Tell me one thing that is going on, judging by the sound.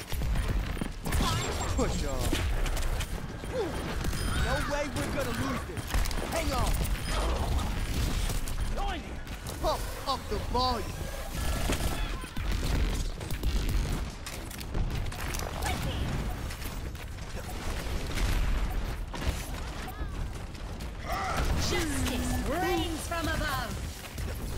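A video game's energy weapon fires rapid bursts.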